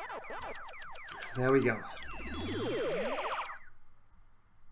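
A video game effect sweeps sharply in pitch.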